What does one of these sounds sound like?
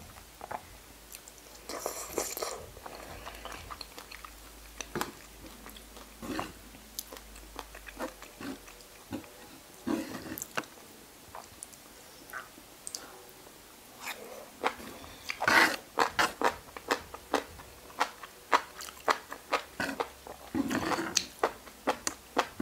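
A young woman chews crunchy food noisily close to a microphone.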